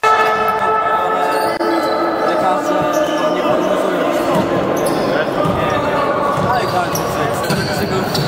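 Young men chatter in an echoing hall.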